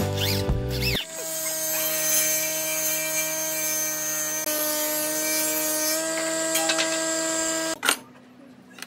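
A table saw runs with a steady high whine.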